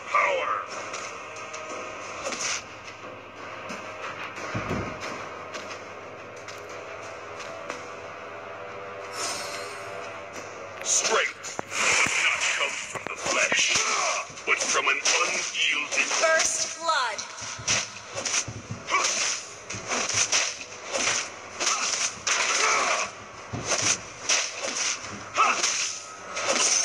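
Video game sound effects of magic blasts and weapon strikes clash rapidly.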